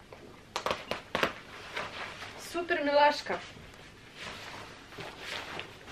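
Fabric rustles as a sweater is pulled off.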